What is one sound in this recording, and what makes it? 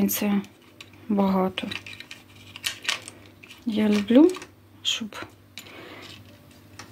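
Small metal earrings clink and rattle softly against a card.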